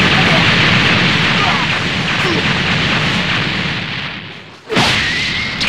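An energy blast roars loudly and steadily, then fades.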